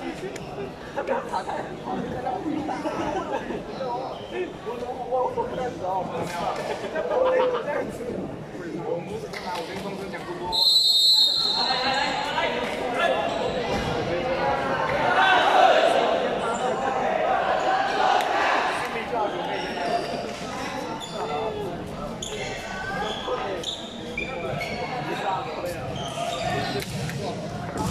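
A crowd of young people chatters and cheers loudly in a large echoing hall.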